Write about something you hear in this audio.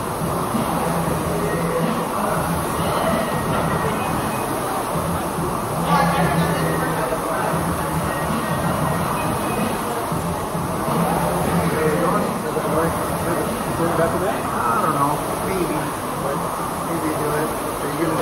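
Rowing machines whir steadily as their flywheels spin.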